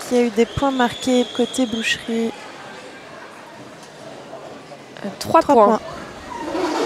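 Young women on skates shout to each other across the hall.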